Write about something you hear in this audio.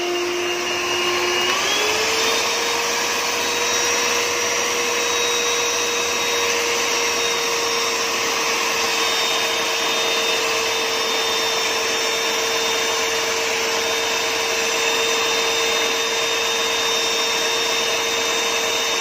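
An electric mixer whirs steadily, its motor rising in pitch as it speeds up.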